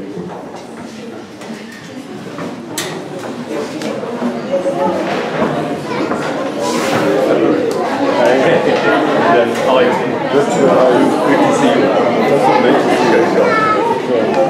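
A young man speaks into a microphone, heard through a loudspeaker in an echoing room.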